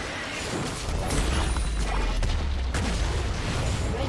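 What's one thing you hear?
A turret collapses with a heavy rumble.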